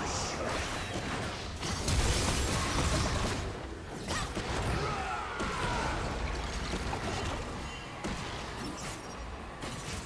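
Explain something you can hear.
Magical spell effects crackle and burst in a chaotic fight.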